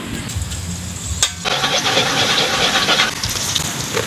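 A metal spatula scrapes against a wok.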